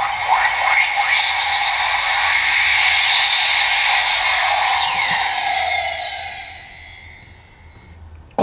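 A toy robot plays loud electronic sound effects that slowly fade away.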